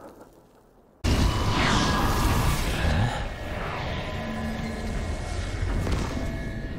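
A crackling fire roars steadily.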